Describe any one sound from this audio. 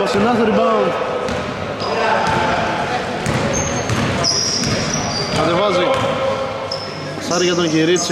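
Men shout loudly across an echoing hall.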